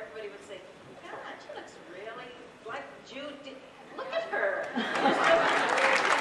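An elderly woman speaks with animation through a microphone in a large hall.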